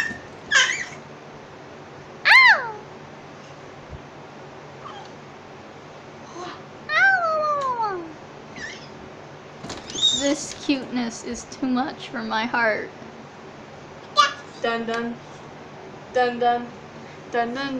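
A baby squeals and babbles happily close by.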